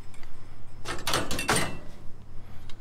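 Metal scrap clatters and rattles as it is pulled from a bin.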